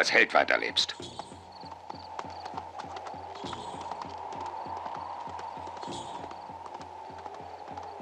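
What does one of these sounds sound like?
Horse hooves gallop on dry ground and slowly fade.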